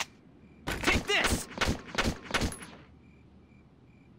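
A rifle fires several shots.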